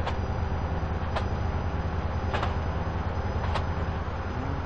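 Train wheels clack over rail joints at a steady pace.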